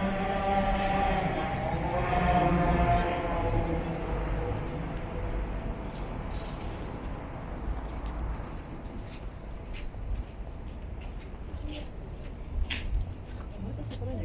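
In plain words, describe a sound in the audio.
Footsteps scuff on pavement nearby.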